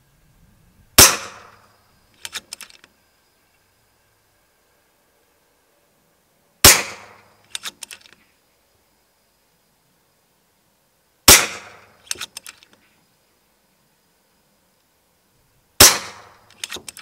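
An air rifle fires several sharp cracks, a few seconds apart.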